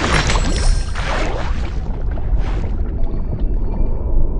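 A game's bubbling underwater sounds play softly.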